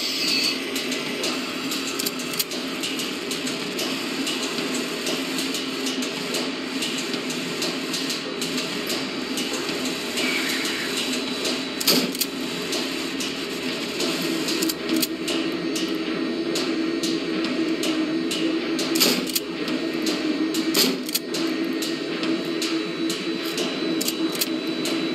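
Footsteps clack on a hard floor.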